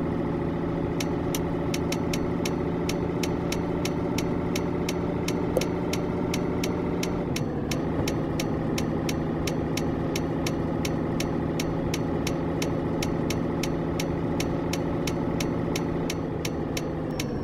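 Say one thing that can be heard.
A turn signal ticks rapidly and evenly.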